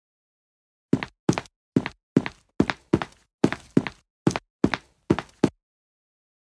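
Quick footsteps tap along a pavement.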